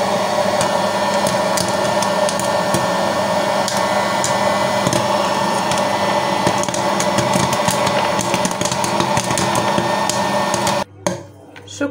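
A hot air popcorn machine whirs steadily.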